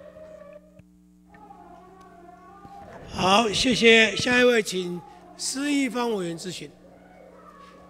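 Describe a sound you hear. A man speaks loudly and animatedly through a microphone in an echoing hall.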